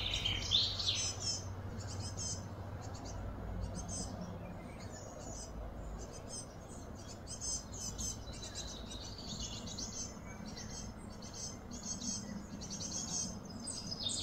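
Young gorillas scamper and scuffle softly on grass.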